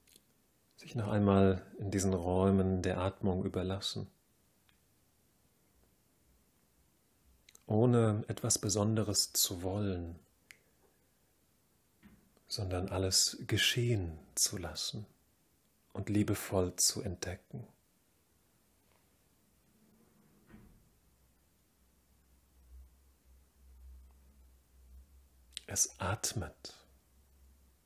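A man speaks calmly and slowly, close by, with long pauses.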